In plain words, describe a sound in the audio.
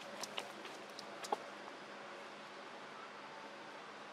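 Dry leaves rustle as monkeys walk over them.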